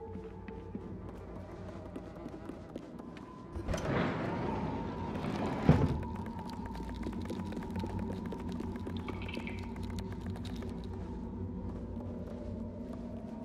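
Small footsteps patter on wooden floorboards.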